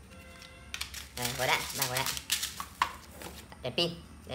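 Bubble wrap rustles and crinkles as hands dig through it.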